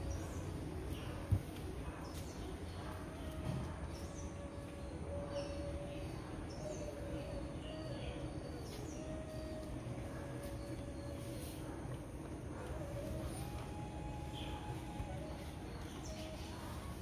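Dogs' paws patter softly on paving.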